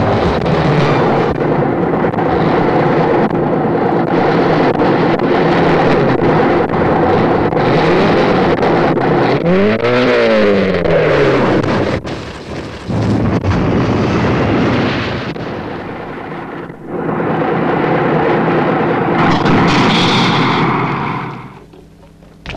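A tractor engine chugs loudly.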